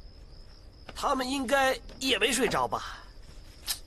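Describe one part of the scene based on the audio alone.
Another young man answers with animation.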